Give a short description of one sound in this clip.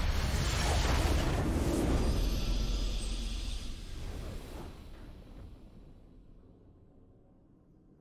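A deep, booming victory fanfare bursts out loud and slowly fades away.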